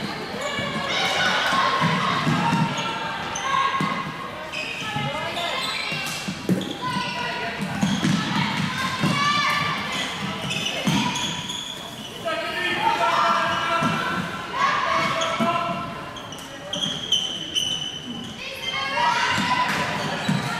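Floorball sticks clack against a ball in a large echoing hall.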